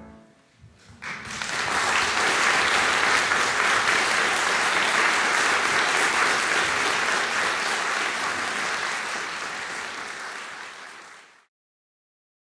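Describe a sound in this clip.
An audience applauds warmly in a large hall, then the clapping fades out.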